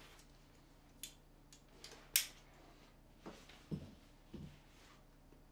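Small knocks and clicks sound close by.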